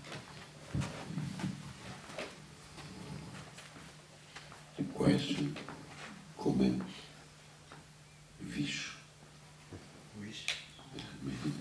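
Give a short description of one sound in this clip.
An older man speaks into a microphone over loudspeakers.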